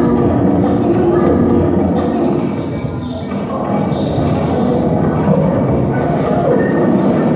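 Dense electronic music plays loudly through speakers in an echoing hall.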